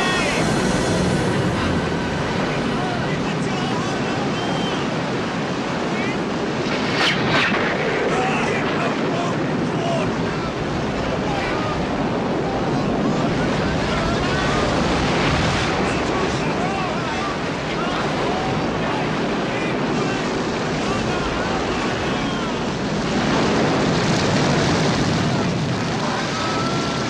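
Men shout over the storm.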